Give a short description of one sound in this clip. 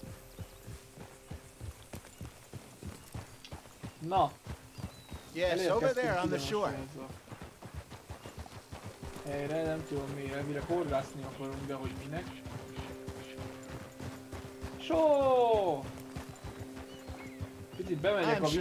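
Horse hooves clop steadily on stony ground.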